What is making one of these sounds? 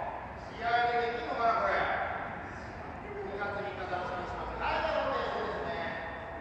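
Adults call out to each other across a large echoing hall.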